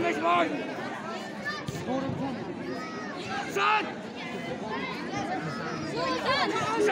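A large crowd of children and adults chatters and shouts nearby, outdoors.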